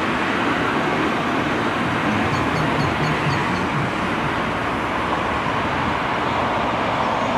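A diesel engine of a backhoe loader rumbles steadily nearby.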